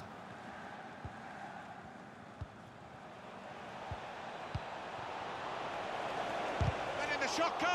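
A football is kicked with dull thumps now and then.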